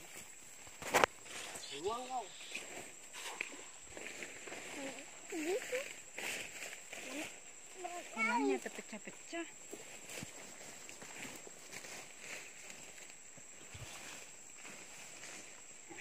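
Leaves and grass rustle as boys push through the plants.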